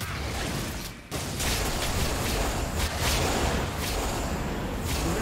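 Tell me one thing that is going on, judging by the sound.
Magic spells crackle and burst in a fight between game characters.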